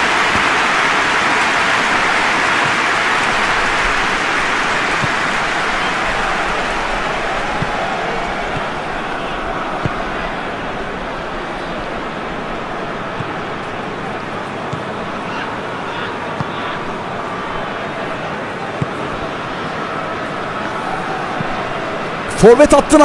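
A large crowd roars steadily in the distance.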